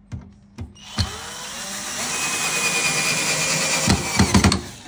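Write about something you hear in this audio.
A cordless drill whirs loudly as it drives a screw into wood.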